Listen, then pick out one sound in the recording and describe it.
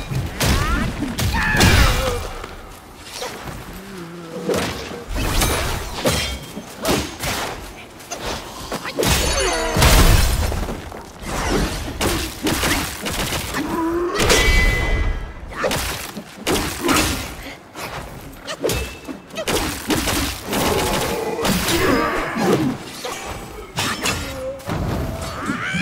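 Metal weapons clash and strike in rapid bursts.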